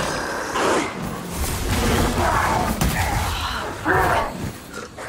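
A magic blast crackles and booms.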